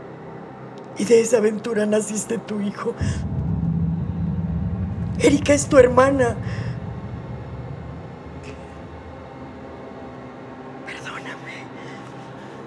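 A middle-aged woman speaks tearfully, close by.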